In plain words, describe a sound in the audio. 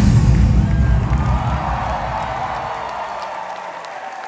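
Loud pop music with a heavy beat plays over loudspeakers in a large hall, then stops.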